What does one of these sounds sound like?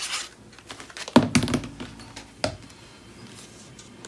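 A glue bottle is set down with a knock on a table.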